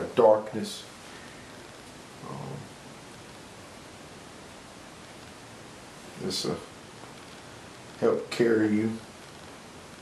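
A man speaks calmly in short bursts close by.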